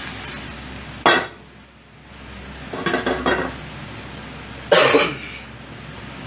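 A metal pan clanks against the stove.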